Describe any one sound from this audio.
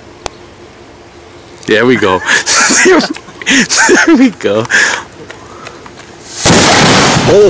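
A firework fuse fizzes and hisses.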